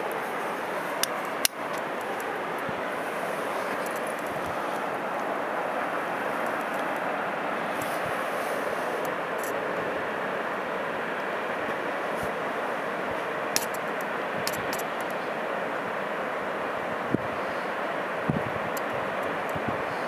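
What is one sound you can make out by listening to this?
A distant waterfall roars steadily.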